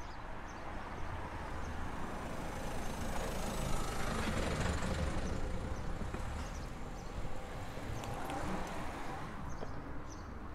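A van drives slowly past close by, its engine rising and then fading.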